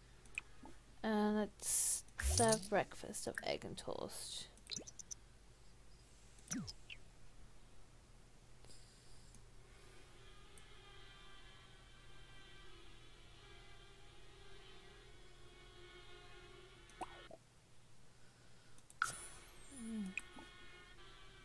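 Soft game menu clicks and chimes sound.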